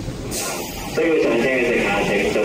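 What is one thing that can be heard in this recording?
A train pulls into the station with a loud rumble.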